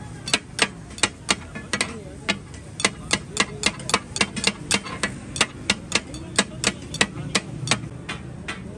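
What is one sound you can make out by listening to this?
Metal spatulas clang rapidly against a hot griddle, chopping food.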